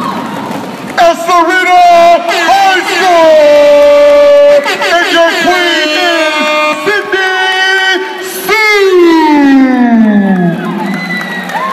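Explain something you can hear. Young women scream and cheer with excitement.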